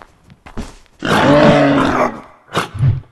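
A large animal bellows loudly.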